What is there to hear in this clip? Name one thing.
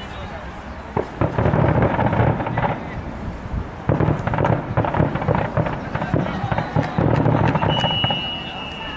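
A team of young men shouts and cheers together outdoors.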